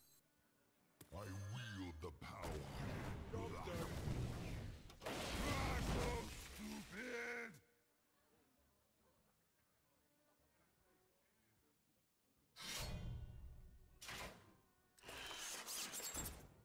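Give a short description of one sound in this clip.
A card game plays whooshing and crashing sound effects as cards are played.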